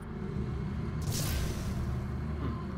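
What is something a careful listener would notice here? An electric blast crackles and bursts loudly.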